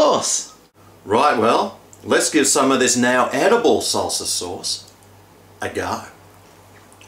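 A man talks with animation close to the microphone.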